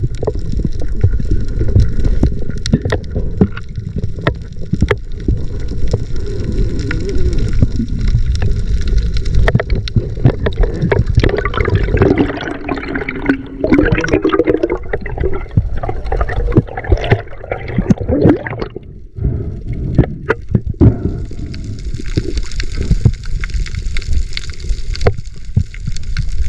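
Water rumbles and swishes in a low, muffled roar, heard from underwater.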